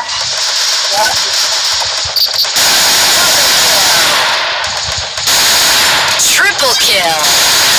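A submachine gun fires in bursts.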